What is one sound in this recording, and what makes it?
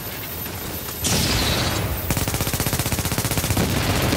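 An explosion booms with a rushing blast.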